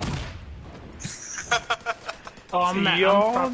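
Guns fire in quick, sharp bursts.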